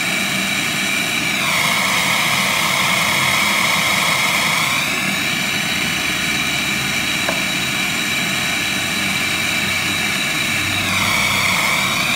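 A gas torch flame hisses and roars steadily, close by.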